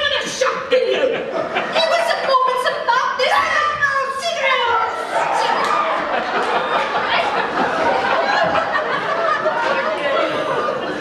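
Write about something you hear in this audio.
A woman sings loudly in a large echoing hall.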